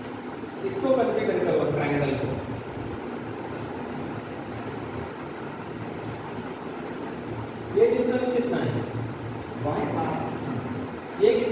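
A man speaks calmly nearby, explaining in a lecturing tone.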